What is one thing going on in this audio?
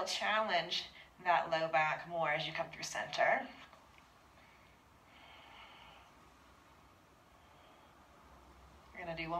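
A young woman speaks calmly and clearly, as if giving instructions.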